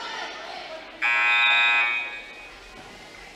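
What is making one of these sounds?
A buzzer blares loudly.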